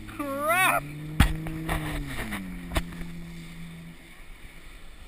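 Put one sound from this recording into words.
A motorboat engine hums and then fades away.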